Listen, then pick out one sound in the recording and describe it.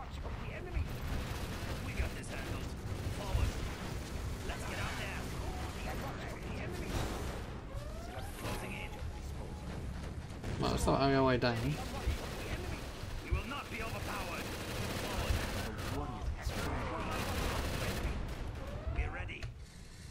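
Explosions boom and rumble repeatedly.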